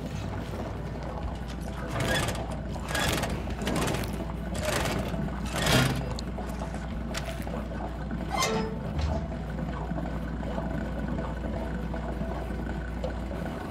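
A large machine hums with a low, steady drone.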